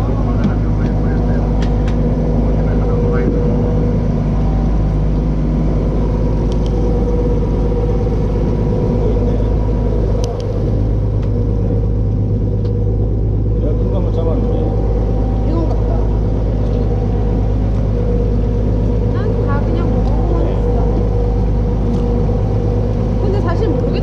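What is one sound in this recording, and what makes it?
A boat engine hums steadily throughout.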